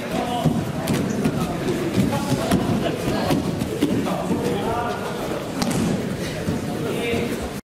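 Young men shout and grunt with effort in a large echoing hall.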